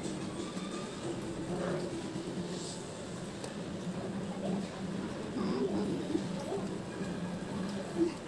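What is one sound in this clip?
Flatbread tears softly by hand.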